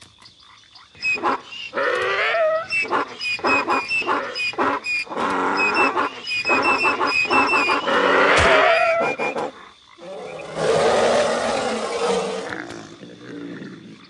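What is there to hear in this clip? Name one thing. A cartoonish creature chatters, squeaks and growls in bursts.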